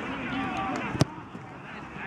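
A foot kicks a football.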